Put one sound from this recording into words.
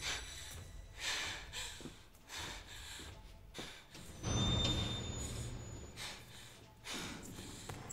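Bare footsteps pad softly on a hard floor.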